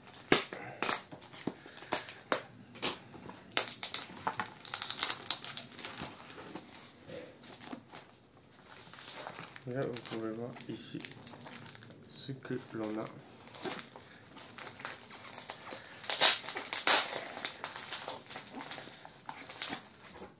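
Hands rustle a cardboard box.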